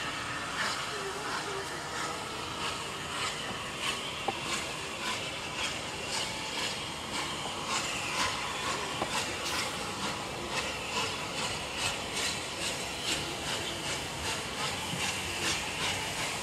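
Train wheels clank over rail joints.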